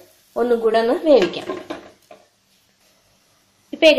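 A glass lid is set on a frying pan.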